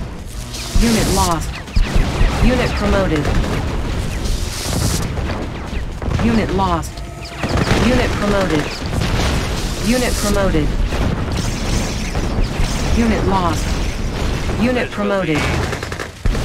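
Zapping laser weapons fire in short bursts.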